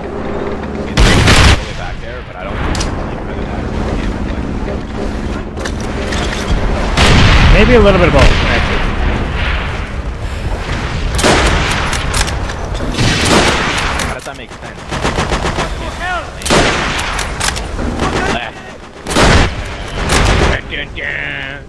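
Loud explosions boom nearby.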